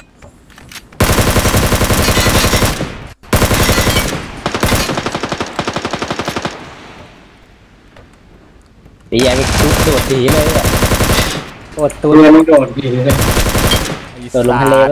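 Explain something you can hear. Rapid gunfire rattles in fast bursts.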